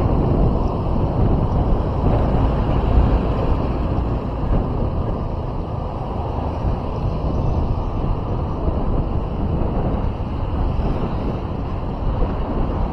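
Wind rushes and buffets loudly throughout.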